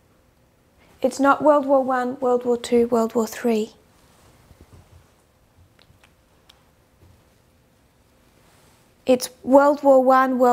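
A woman speaks clearly and calmly, close to a microphone.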